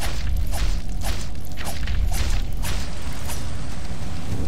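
Sword blows strike an enemy in quick hits.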